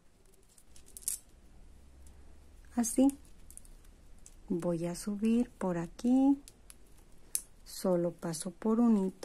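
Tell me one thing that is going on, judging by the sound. Plastic beads click and clack against each other.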